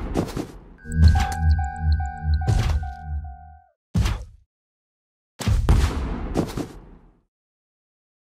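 A giant monster pounds the ground with heavy thuds.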